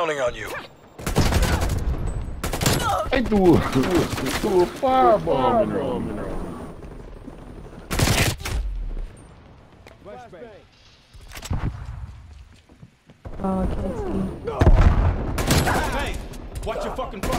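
Gunfire crackles in short rapid bursts.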